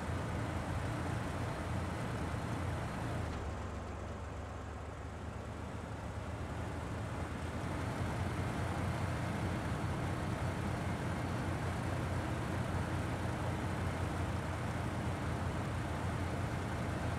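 A heavy truck engine rumbles and strains steadily.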